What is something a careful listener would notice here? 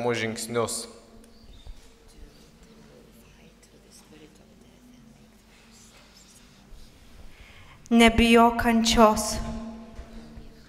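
A woman sings briefly into a microphone in an echoing hall.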